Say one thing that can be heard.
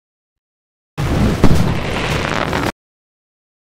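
A loud game sound effect bursts out briefly.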